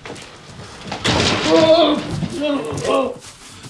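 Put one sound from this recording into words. A man cries out loudly nearby.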